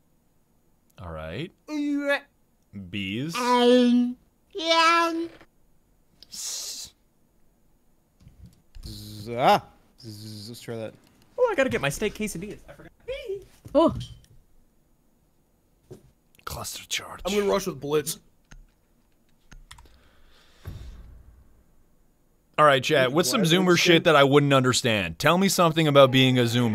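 A young man talks with animation close to a microphone, in short bursts.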